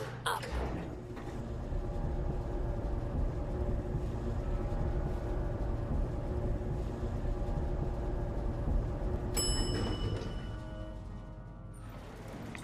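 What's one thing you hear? An elevator hums steadily as it rises.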